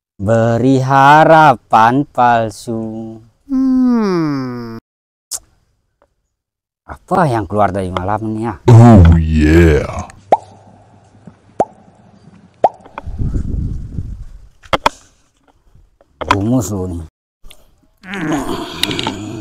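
A young man speaks loudly and with animation close by.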